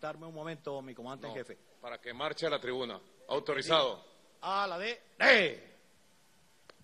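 A man shouts commands loudly over a loudspeaker outdoors.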